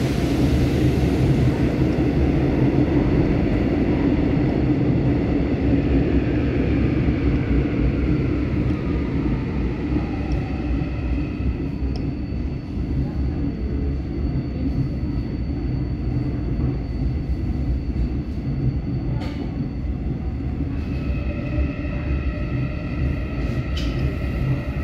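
A subway train rumbles steadily along the tracks.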